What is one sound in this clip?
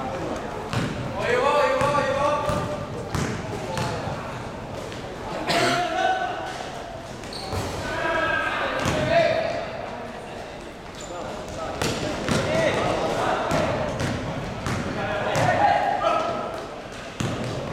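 Young men shout to each other across an echoing court.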